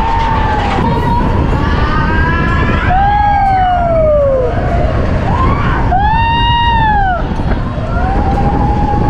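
A young man shouts and whoops with excitement.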